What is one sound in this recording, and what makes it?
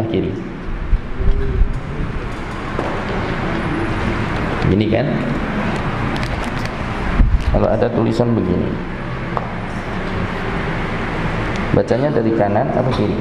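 A man speaks calmly into a microphone, heard through a loudspeaker in an echoing room.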